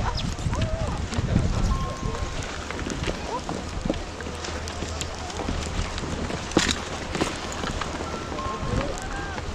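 Children's voices chatter and call out nearby in a crowd.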